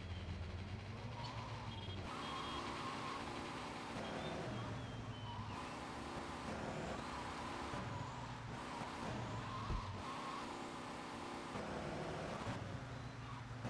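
A sports car engine roars and revs repeatedly.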